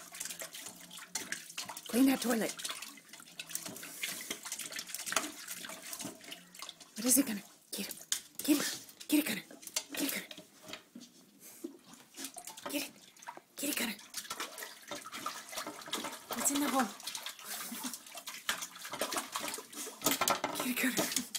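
A dog laps water noisily and quickly, close by.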